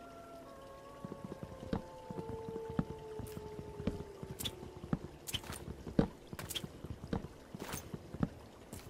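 An axe chops at wood with quick, repeated knocks.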